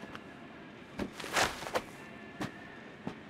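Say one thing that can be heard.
Footsteps walk away on a hard, gritty floor.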